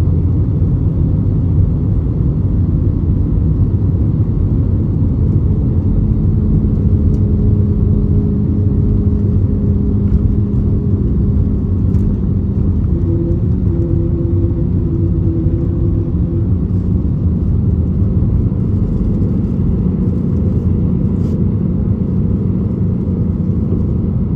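Jet engines roar steadily as an airliner speeds down a runway and lifts off.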